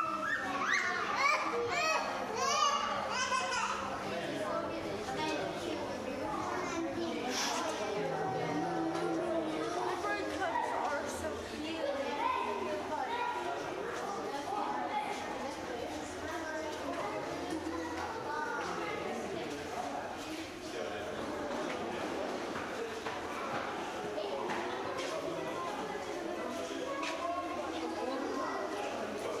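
A crowd of visitors, adults and children, chatter in an echoing indoor hall.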